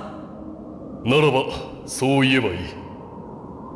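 A man speaks in a deep, calm voice.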